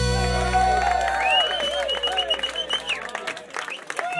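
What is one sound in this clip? A band plays lively music, then stops.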